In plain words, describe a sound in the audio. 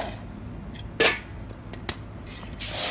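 A metal can knocks against concrete.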